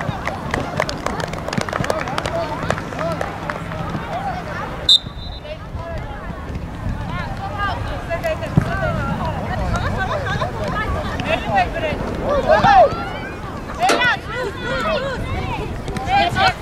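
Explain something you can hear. Young women players shout and call to each other across an open field.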